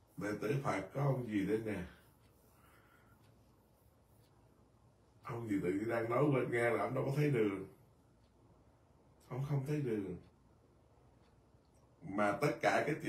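An elderly man speaks calmly and slowly in bursts close to a microphone, with pauses between.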